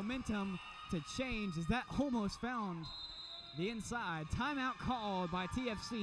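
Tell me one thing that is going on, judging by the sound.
A volleyball is struck hard several times.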